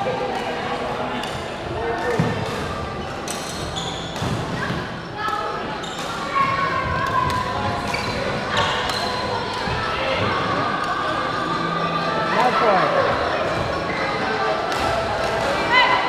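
Shoes squeak on a hard court floor in a large echoing hall.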